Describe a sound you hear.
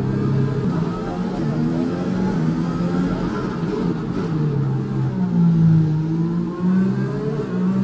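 A racing car engine revs high and shifts gears.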